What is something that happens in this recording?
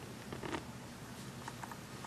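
A hand scratches a cat's fur.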